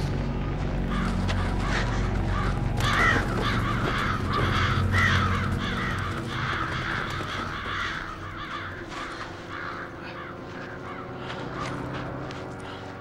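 A flock of crows caws loudly and harshly.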